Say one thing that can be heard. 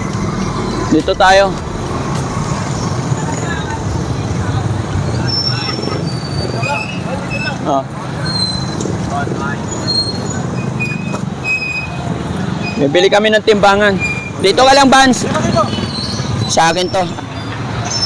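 Men talk loudly nearby outdoors.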